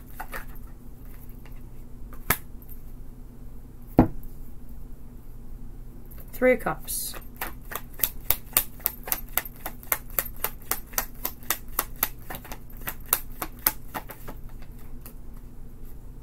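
A deck of tarot cards is shuffled hand over hand, the cards slapping and clicking together.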